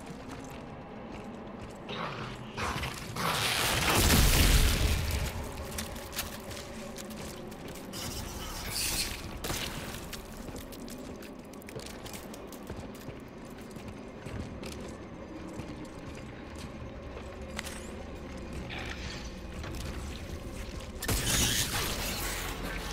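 Heavy boots thud on a hard floor.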